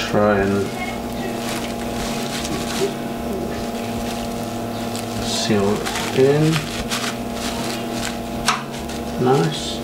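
Water sloshes and wet grain squelches in a pot.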